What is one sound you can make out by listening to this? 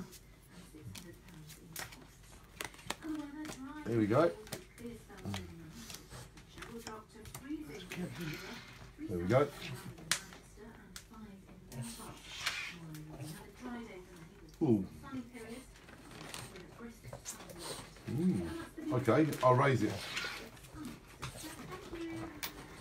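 Playing cards slap and flick onto a wooden table.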